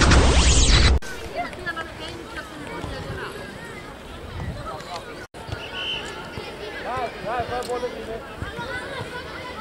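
Young children shout and call out across an open field.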